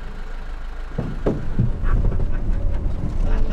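A vehicle rumbles along a bumpy dirt track.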